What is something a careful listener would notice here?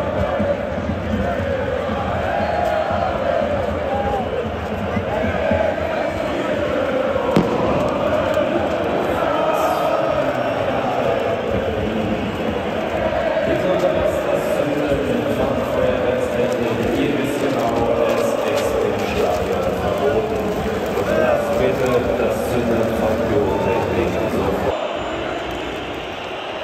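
A huge stadium crowd chants and sings loudly, echoing all around.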